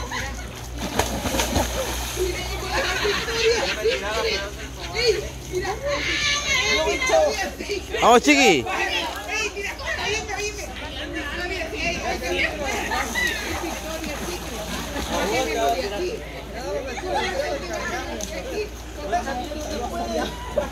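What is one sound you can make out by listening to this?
A crowd of people chatter and shout nearby, outdoors.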